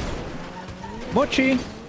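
A man exclaims into a microphone close by.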